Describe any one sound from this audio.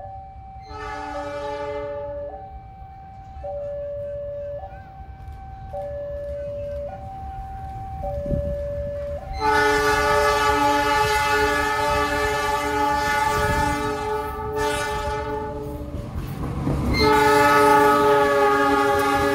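A locomotive horn blares loudly in long, changing tones.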